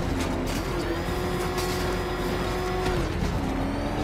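Metal crashes and debris clatters as a car smashes through obstacles.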